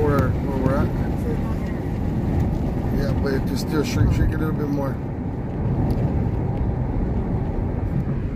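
A car engine hums and tyres rumble on the road from inside the car.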